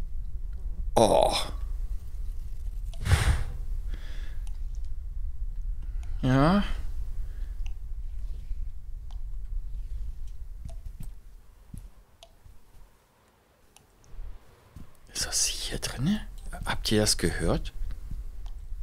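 A young woman speaks briefly and calmly into a close microphone.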